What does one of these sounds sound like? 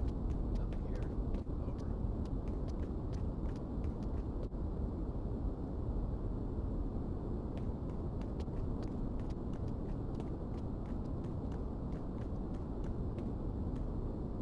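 Footsteps tread softly on concrete.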